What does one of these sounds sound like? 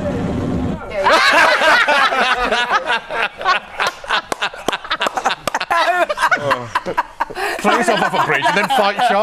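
A group of men and women laugh loudly in a room.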